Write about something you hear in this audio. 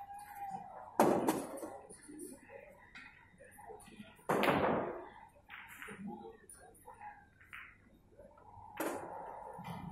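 A cue stick strikes a ball with a sharp click.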